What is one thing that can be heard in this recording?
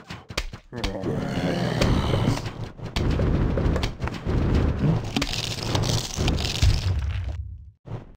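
Game sound effects pop rapidly as cartoon plants shoot peas.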